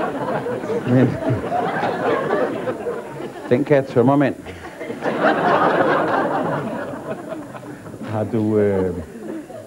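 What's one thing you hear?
An older man speaks calmly through a close microphone.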